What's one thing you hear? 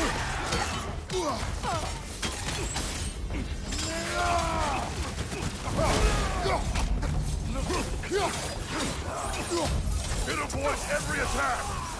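Metal blades slash and strike with heavy impacts.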